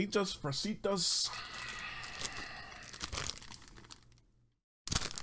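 A plastic packet crinkles.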